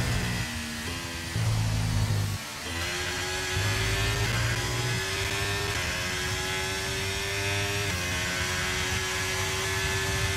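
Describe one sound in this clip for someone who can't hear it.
A racing car engine whines loudly, its pitch climbing and dropping with each gear change.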